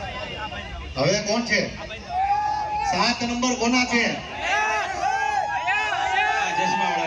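A man speaks loudly and with animation through a microphone and loudspeakers, outdoors.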